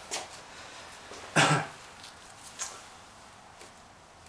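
Plastic gloves rustle and crinkle close by.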